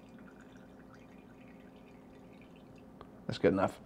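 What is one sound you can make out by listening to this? Wine pours and gurgles into a glass.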